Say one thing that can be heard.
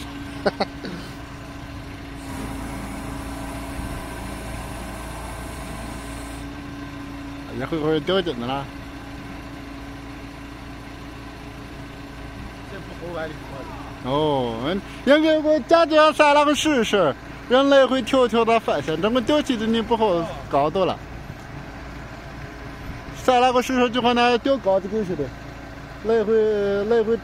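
A crane's engine hums steadily.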